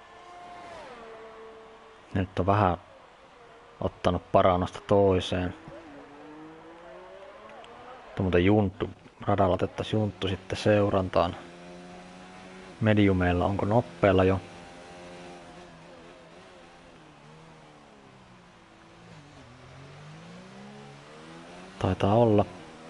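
A racing car engine whines, rising and falling in pitch as it revs.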